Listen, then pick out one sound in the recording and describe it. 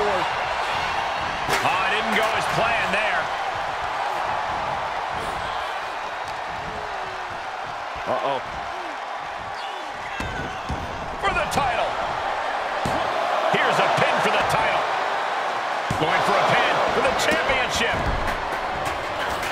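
A large crowd cheers and roars throughout an echoing arena.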